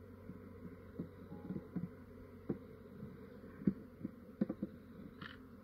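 Wooden hive boxes knock against each other.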